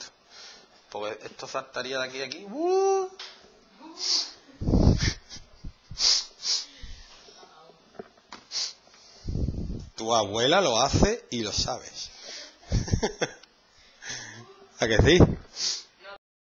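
A man explains calmly and clearly, close by.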